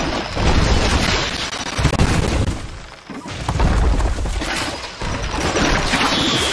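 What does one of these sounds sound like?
Swords clash in a distant battle.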